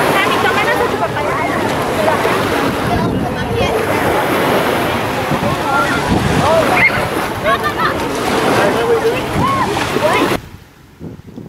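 A crowd of people chatter and shout nearby.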